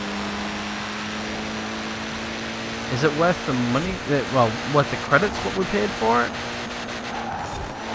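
A racing car's engine roars at high speed.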